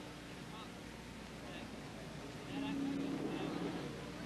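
Distant race cars drone around a track.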